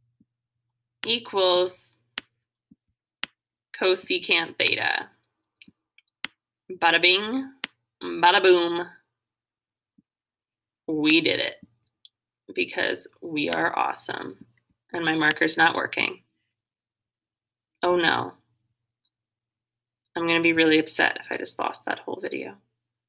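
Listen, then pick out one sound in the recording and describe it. A girl speaks calmly close to a microphone, in short phrases with pauses.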